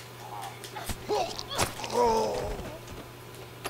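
A man grunts and snarls in a struggle.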